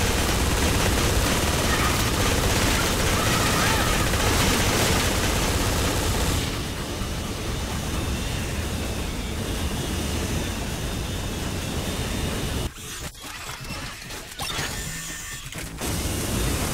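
A hovering vehicle's engine hums and roars steadily.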